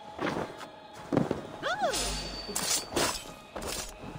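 A blade stabs into a body with a heavy thud.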